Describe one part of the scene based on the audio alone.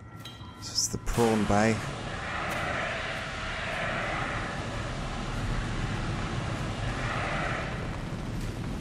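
A fire extinguisher sprays with a hiss.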